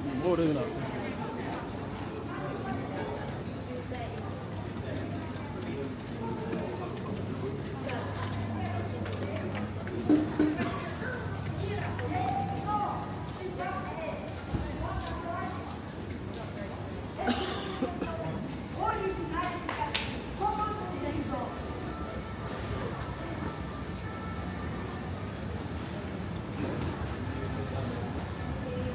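Footsteps splash on a wet pavement outdoors.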